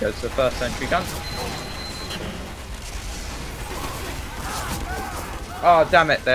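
Gunfire rattles in a video game.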